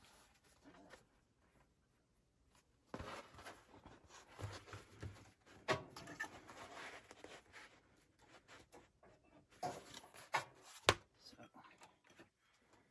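A sewing machine stitches with a quick rattle.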